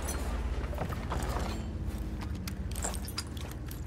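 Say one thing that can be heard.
A wooden crate lid creaks and knocks open.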